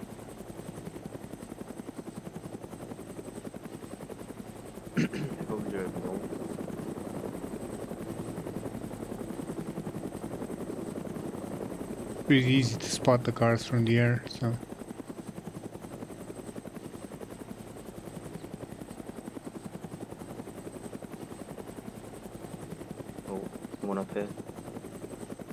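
A helicopter's rotor thumps steadily as it flies low overhead.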